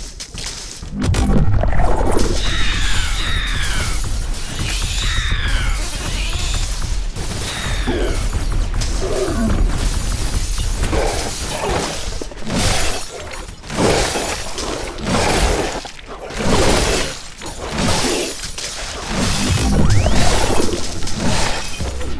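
Energy weapons fire in rapid, crackling bursts.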